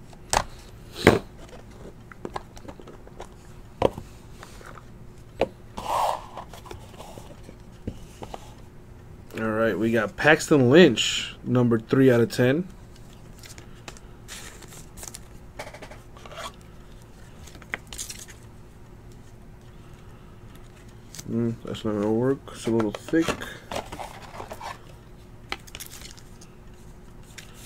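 Cards and a plastic card case tap and click as they are handled.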